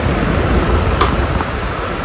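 A plastic fan knob clicks once.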